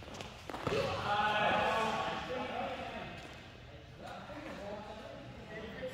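Young people's voices call out and chatter in the echoing hall.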